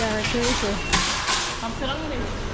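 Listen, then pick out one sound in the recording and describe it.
Metal shopping carts rattle and clatter.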